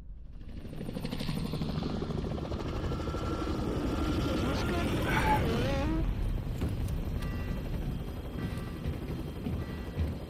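Helicopter rotors thump and roar.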